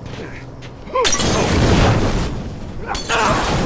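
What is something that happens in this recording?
A fire bursts and roars loudly.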